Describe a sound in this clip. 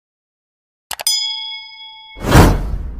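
A small bell chimes and rings out.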